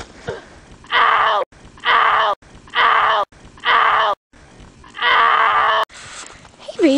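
A young woman laughs and shrieks nearby.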